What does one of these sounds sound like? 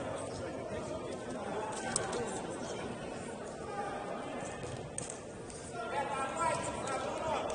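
Players shout and call out across an echoing indoor pitch.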